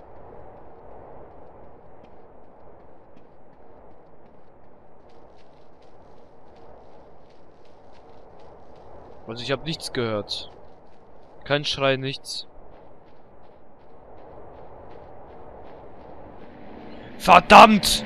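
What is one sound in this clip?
Footsteps thud quickly on sandy ground.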